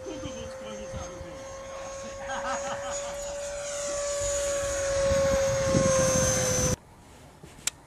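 A model jet's turbine whines loudly as it flies past overhead.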